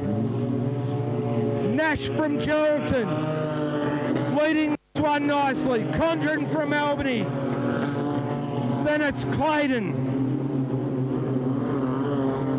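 A racing car engine roars loudly, revving up and down.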